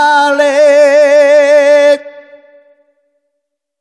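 A man sings a long held note with vibrato into a microphone, ending with a short echo.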